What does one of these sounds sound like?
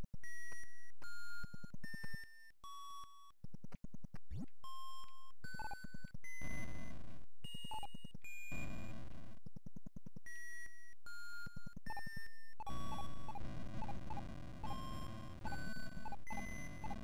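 Bright, beeping retro game music plays in short bursts of notes.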